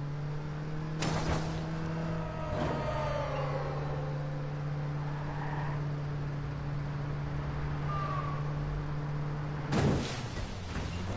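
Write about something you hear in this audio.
A car crashes into a barrier with a loud bang.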